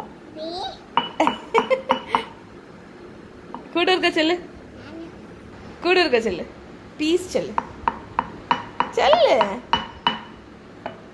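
A metal cup clinks and taps.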